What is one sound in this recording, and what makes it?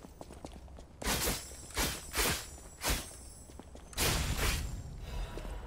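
Sword blows clash and strike.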